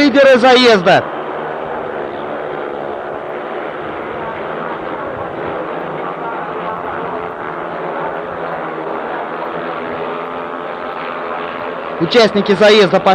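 Motorcycle engines roar loudly as they race past.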